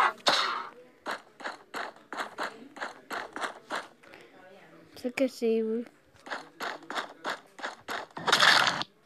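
Quick cartoon footsteps patter steadily.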